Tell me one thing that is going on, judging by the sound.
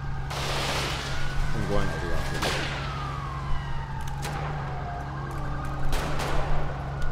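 A police siren wails briefly, rising and falling.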